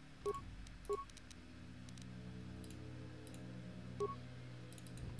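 Menu clicks tick softly.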